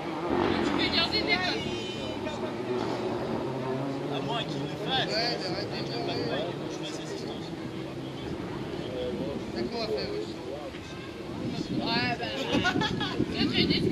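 A crowd of spectators chatters outdoors at a distance.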